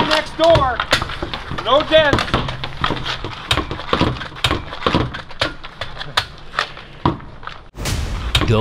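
Hockey sticks clack against a puck on pavement.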